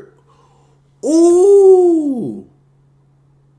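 A young man exclaims loudly in a drawn-out cry.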